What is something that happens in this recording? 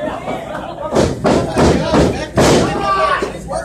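A body slams onto a wrestling ring mat with a loud thud.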